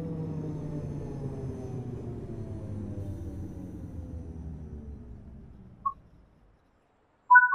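A train's electric motors whine down as the train slows to a stop.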